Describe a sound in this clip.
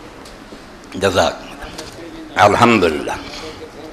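An elderly man speaks into a microphone, heard through a loudspeaker.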